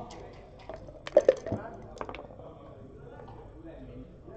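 Dice rattle in a cup and clatter onto a board.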